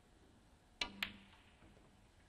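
A snooker cue ball clicks against a red ball.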